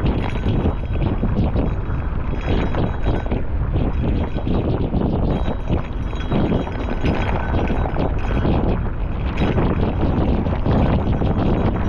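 Wind roars loudly against the rider outdoors.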